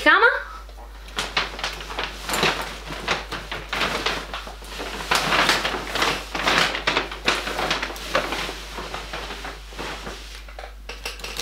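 Packaging and objects rustle and clatter as they are rummaged through.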